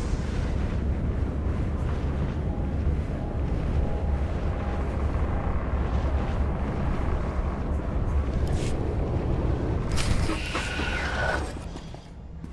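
A vehicle's engine hums low and steadily, then fades away.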